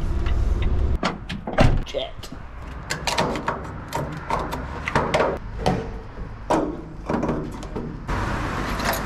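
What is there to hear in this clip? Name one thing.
Metal clanks and knocks as a fuel nozzle is handled.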